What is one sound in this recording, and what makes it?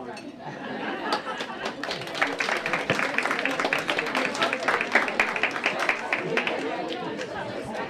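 A crowd applauds in a room.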